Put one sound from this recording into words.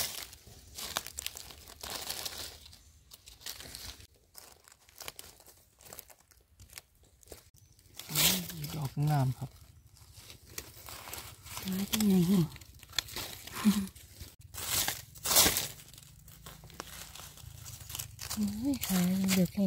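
A knife scrapes and cuts a mushroom stem.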